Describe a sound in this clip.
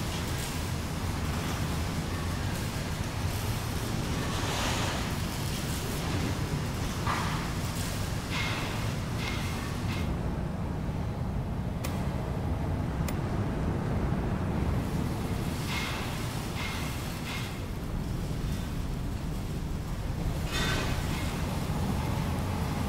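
Drone engines hum steadily overhead.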